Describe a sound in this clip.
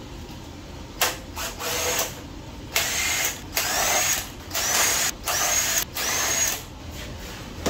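An impact wrench whirs in short loud bursts.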